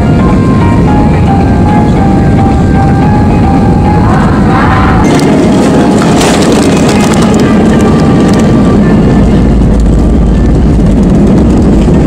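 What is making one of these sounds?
Jet engines roar and whine steadily inside an aircraft cabin.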